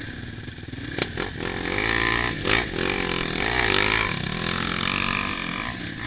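A second dirt bike engine revs nearby.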